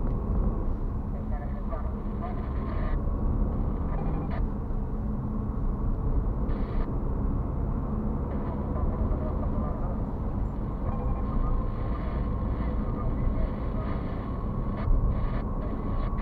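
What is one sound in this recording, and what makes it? A car engine hums steadily, heard from inside the car.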